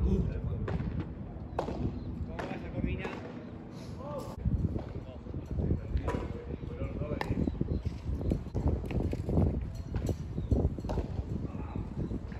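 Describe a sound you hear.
A ball thuds off glass walls and the court.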